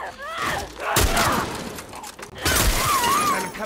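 A rifle fires with a loud bang.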